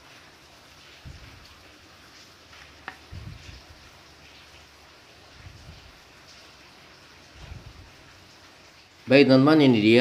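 Hands rub and knock softly against a plastic visor.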